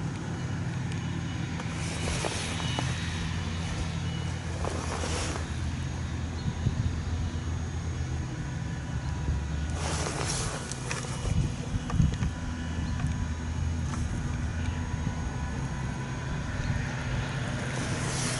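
A forage harvester engine drones steadily in the distance.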